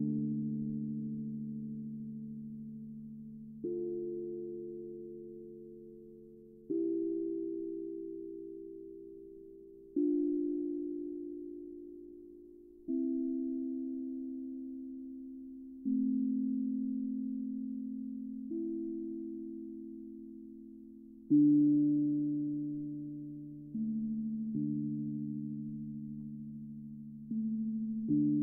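Soft mallets strike a steel tongue drum, sounding slow, ringing low notes that fade away between strikes.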